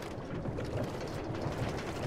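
Bubbles gurgle and rise underwater.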